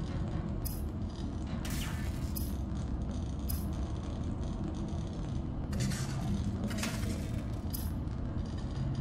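Short electronic blips sound as menu items are highlighted.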